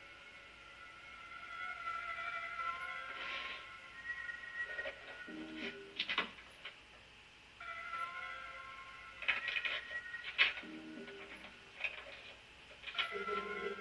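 Music and game sounds play from a television loudspeaker.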